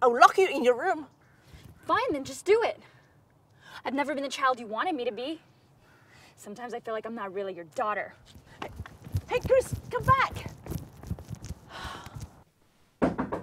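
A woman speaks calmly, close to a microphone.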